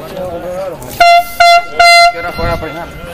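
A referee's whistle blows three short, sharp blasts.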